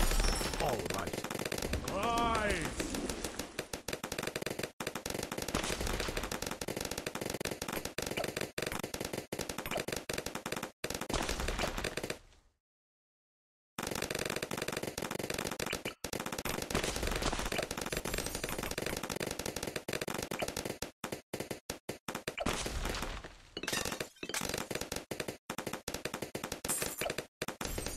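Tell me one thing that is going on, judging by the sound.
Cartoon balloons pop rapidly in a video game.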